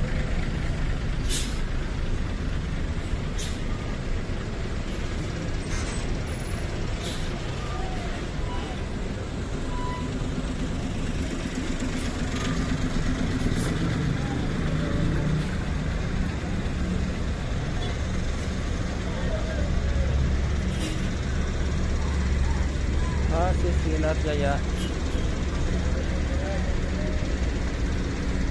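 A diesel coach engine rumbles as it pulls away and passes close by.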